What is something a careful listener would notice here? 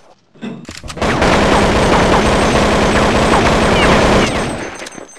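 A rifle fires in rapid, rattling bursts.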